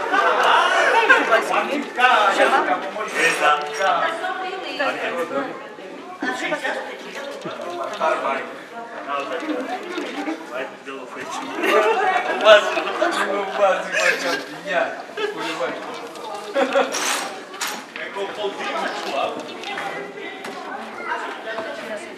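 Several adults talk and laugh nearby.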